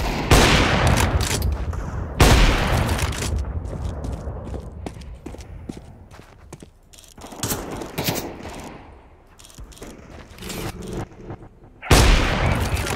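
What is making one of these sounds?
A sniper rifle fires loud, booming shots that echo away.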